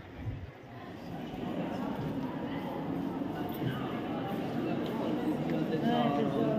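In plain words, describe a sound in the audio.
A crowd murmurs with many voices in a large echoing hall.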